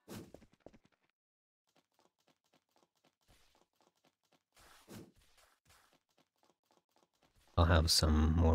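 Quick footsteps patter softly on a hard floor.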